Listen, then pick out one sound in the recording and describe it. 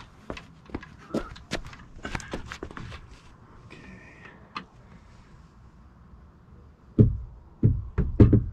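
Footsteps scuff on a paved driveway close by.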